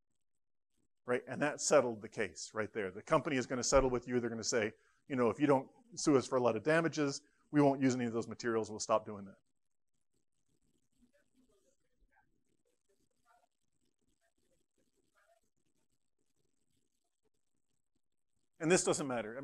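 A middle-aged man speaks with animation in a quiet room.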